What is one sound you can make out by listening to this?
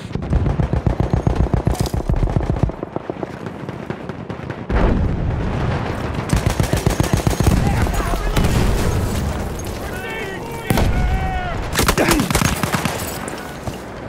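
A submachine gun fires rapid bursts close by.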